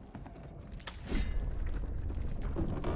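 Heavy footsteps thud on creaking wooden planks.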